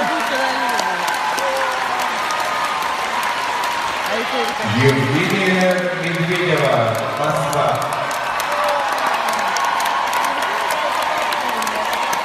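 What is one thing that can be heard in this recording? A crowd claps throughout.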